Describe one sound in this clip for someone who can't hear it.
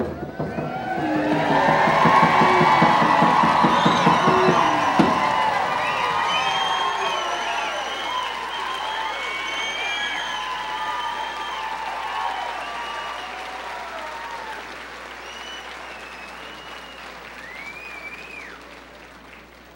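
A crowd of performers sings and calls out on stage.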